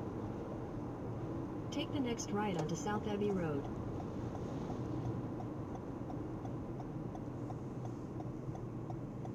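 A car engine hums and tyres roll steadily on the road.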